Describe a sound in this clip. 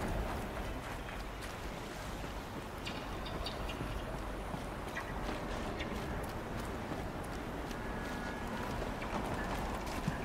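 Footsteps crunch on rocky, snowy ground.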